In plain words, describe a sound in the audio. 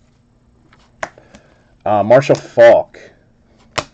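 Trading cards slide and flick against each other in a pair of hands.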